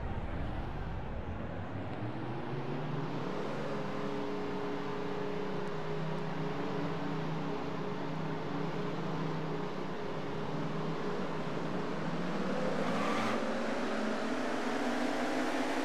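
Racing engines drone steadily and rise in pitch as a car speeds up.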